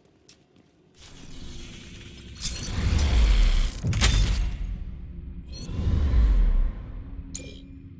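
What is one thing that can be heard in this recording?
A deep whooshing rumble swells and fades in bursts.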